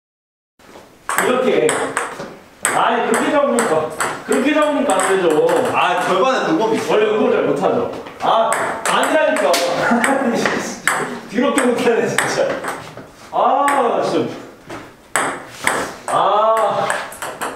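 Young men talk with animation nearby.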